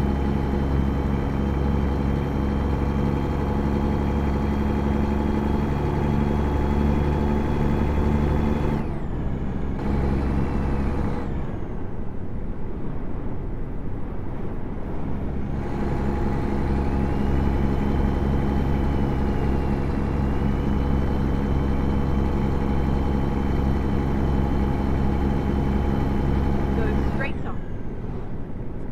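A heavy truck engine rumbles steadily, easing off for a few seconds and then building again.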